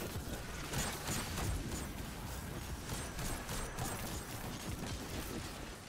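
Gunshots fire rapidly in a video game.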